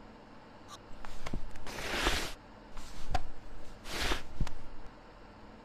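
A wooden hatch slides open.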